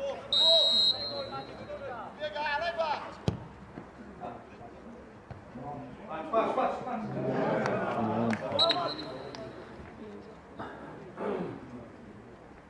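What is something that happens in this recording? Football players shout to each other across an open pitch outdoors.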